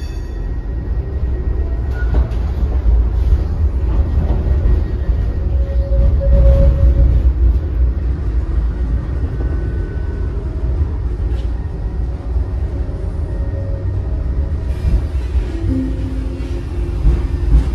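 Tram wheels rumble and clatter over the rails.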